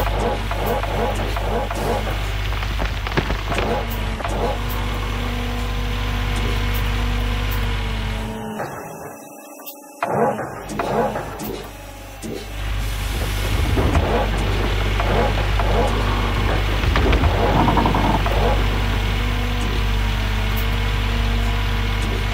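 An excavator engine rumbles steadily.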